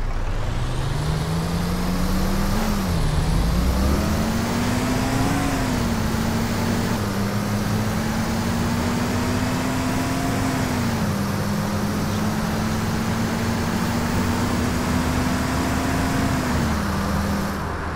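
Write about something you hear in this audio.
A bus engine hums and rises in pitch as it changes gears while driving.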